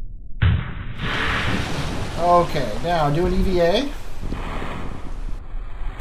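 A heavy object splashes into water.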